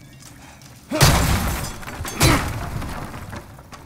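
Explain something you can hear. Wooden crates smash and splinter with a loud crash.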